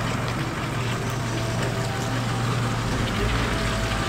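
A trailer rolls slowly over brick paving.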